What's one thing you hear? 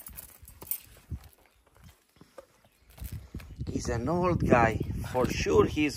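A metal chain clinks and drags on concrete.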